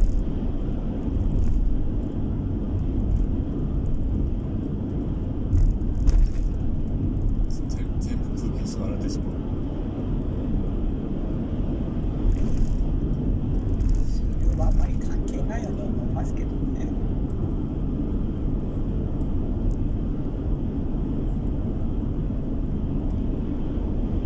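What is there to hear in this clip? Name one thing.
A vehicle's engine hums and tyres roar steadily on the road, heard from inside the cab.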